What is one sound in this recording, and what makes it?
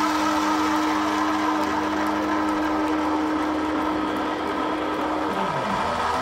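Distorted electric guitars ring out loudly with a sustained droning note.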